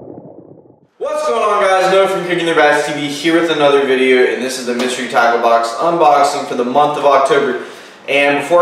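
A young man talks calmly and clearly, close to a microphone.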